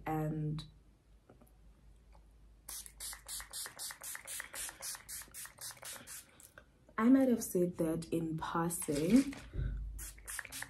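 A young woman speaks calmly, close to the microphone.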